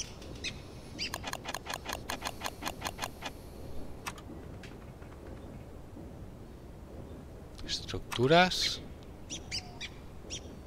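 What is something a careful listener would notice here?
Soft game menu clicks tick in quick succession.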